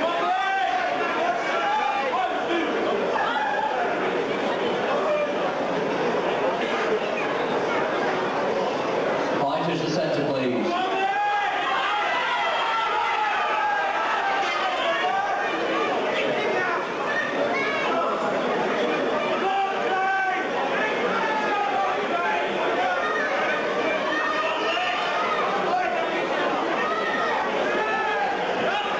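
A large crowd chatters and calls out in a large hall.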